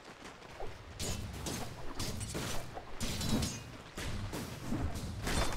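Swords clash and spells crackle in a fight.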